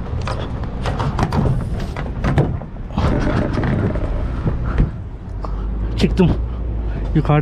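Footsteps scuff on a metal roof.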